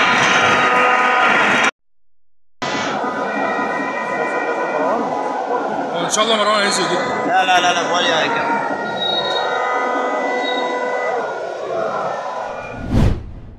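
A large stadium crowd chants and sings loudly in the open air.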